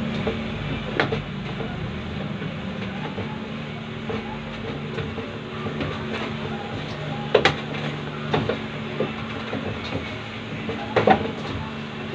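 Fingers knock against the rim of a stainless steel bowl.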